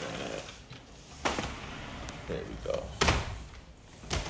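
A sliding glass door rolls open along its track.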